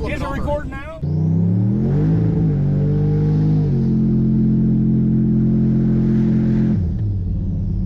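A car engine revs up and roars through the gears.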